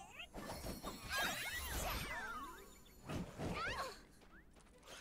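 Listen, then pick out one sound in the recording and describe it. Magic attacks whoosh and crackle in a video game battle.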